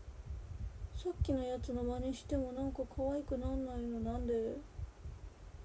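A young woman sings softly close by.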